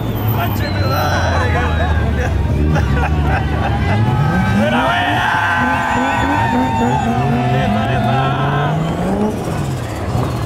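Tyres screech on tarmac.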